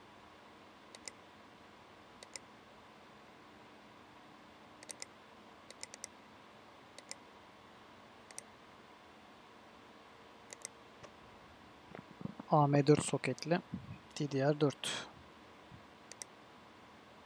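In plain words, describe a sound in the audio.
Short, soft clicks sound now and then as menus open.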